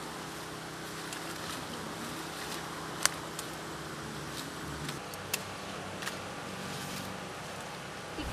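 A knife snaps through plant stalks.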